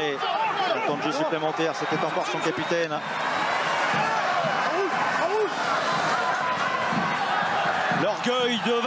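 A large crowd cheers and roars steadily outdoors.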